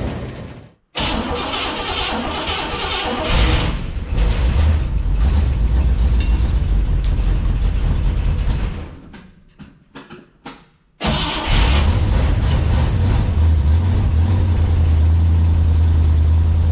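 A car engine roars loudly through its exhaust, easing off briefly and then roaring again with a steady deep drone.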